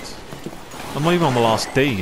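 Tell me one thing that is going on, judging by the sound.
Water splashes as a man wades through it.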